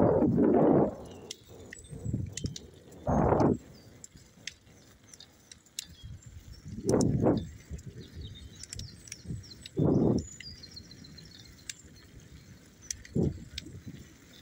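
Wind gusts rumble in short bursts outdoors.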